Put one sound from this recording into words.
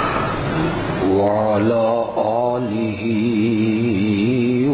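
A man chants a recitation in a melodic voice through a microphone.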